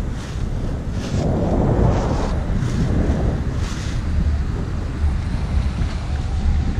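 Strong wind rushes and buffets against the microphone.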